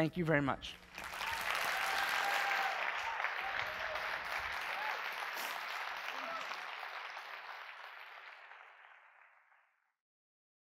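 An audience claps loudly, then the applause fades away.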